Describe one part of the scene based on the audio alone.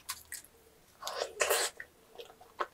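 A young woman takes a crisp bite close to a microphone.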